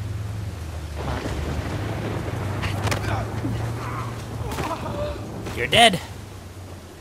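Tall grass rustles as someone creeps through it.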